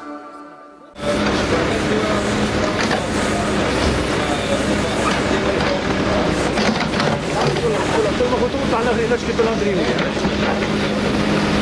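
A small excavator engine rumbles steadily close by.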